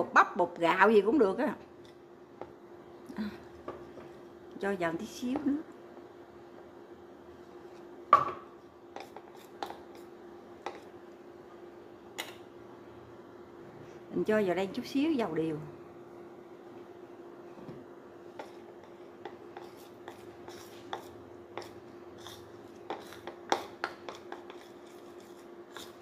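A spoon clinks and scrapes against a plate.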